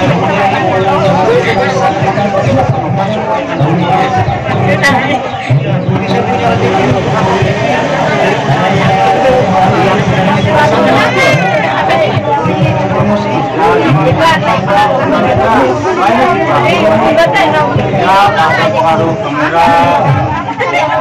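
Several men and women talk together at once, close by and with animation.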